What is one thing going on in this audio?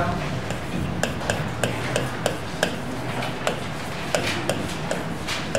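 A pen taps against a board as a man writes.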